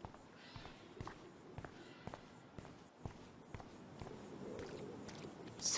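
Footsteps thud at an even pace.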